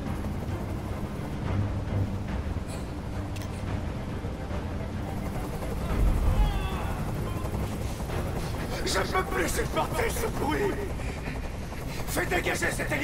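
A helicopter's rotor thuds steadily overhead.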